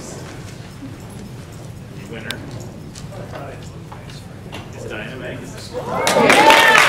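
A man speaks calmly through a microphone to an audience.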